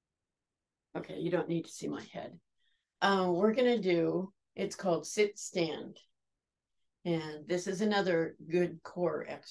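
A middle-aged woman speaks calmly into a nearby microphone.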